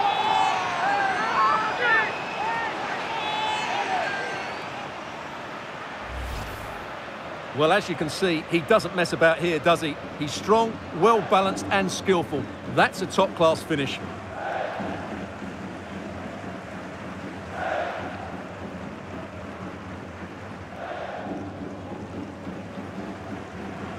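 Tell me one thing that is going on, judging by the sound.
A large stadium crowd cheers loudly.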